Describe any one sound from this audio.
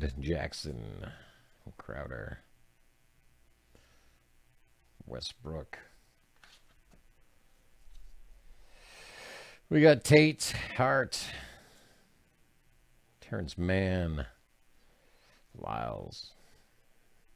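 Trading cards slide and flick against each other in someone's hands.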